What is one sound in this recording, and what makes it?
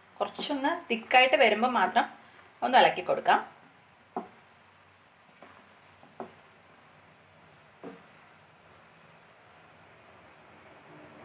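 Thick liquid bubbles and simmers in a pot.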